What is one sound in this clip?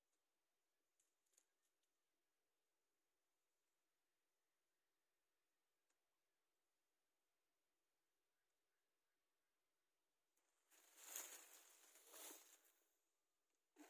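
A net drags and rustles over dry leaves.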